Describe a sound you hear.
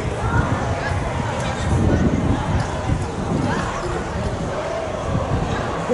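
A crowd chatters faintly in the distance outdoors.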